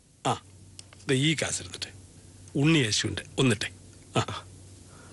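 A younger man answers briefly, close by.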